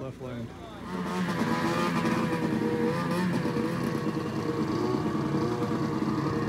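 A snowmobile engine idles close by with a steady rumble.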